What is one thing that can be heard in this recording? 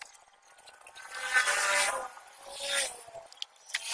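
Pliers scrape and click against metal parts.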